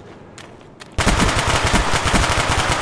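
A gun fires in rapid automatic bursts.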